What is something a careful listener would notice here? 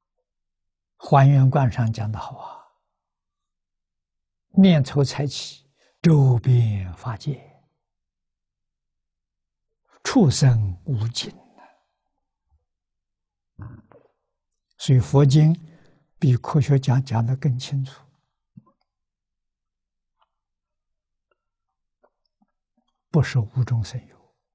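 An elderly man speaks calmly and close to a microphone, with long pauses between phrases.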